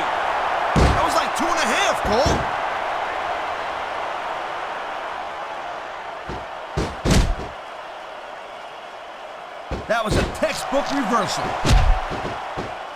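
Bodies slam heavily onto a wrestling mat with loud thuds.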